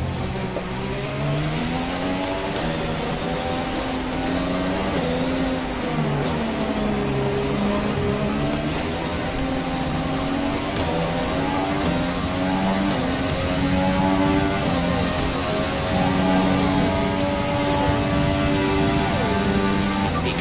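A racing car engine roars, rising and falling in pitch as it shifts gears and brakes.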